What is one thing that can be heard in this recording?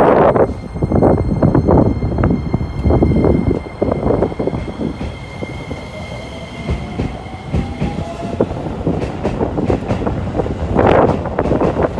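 A train rumbles and rattles past close by.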